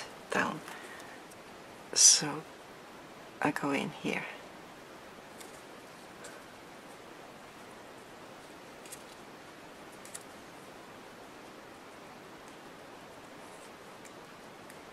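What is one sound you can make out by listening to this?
Paper rustles and crinkles softly as it is handled.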